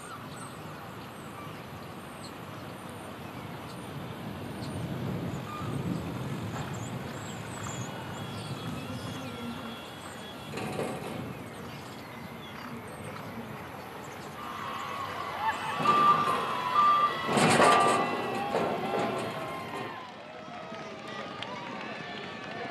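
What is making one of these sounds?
Horses' hooves drum on a dirt track as they gallop.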